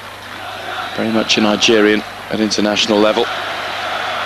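A stadium crowd chants loudly in unison.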